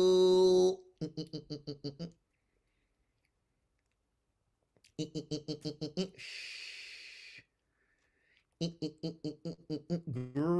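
A man laughs in rapid bursts through a call microphone.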